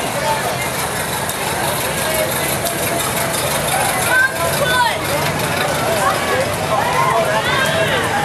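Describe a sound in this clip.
Old car engines rumble as cars roll slowly past.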